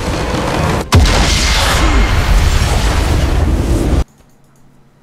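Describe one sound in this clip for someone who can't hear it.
A triumphant game fanfare swells with a loud boom.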